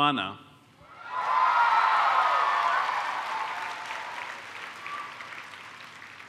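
An audience cheers and applauds in a large hall.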